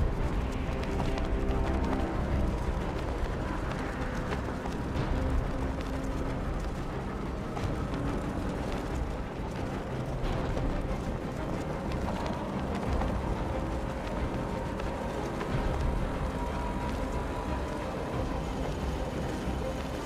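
Wind rushes steadily past a gliding cape.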